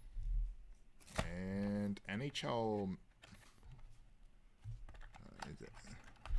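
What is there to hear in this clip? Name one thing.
A card slides out of a cardboard sleeve.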